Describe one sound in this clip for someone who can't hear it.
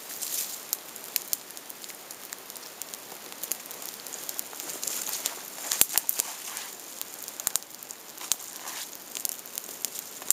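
Dry twigs rustle and snap in a hand.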